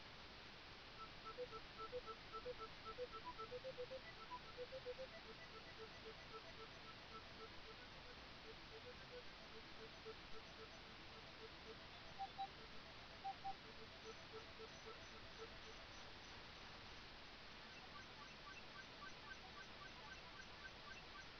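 Retro video game gunfire bleeps rapidly and repeatedly.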